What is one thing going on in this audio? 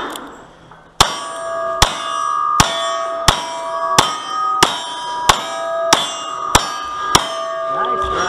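Steel targets ring with metallic pings as they are hit.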